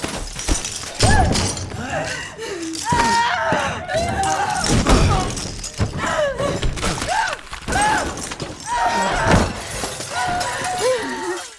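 A young girl whimpers and sobs close by.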